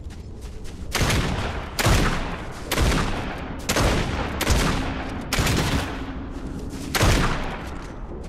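A pickaxe swooshes through the air in quick swings.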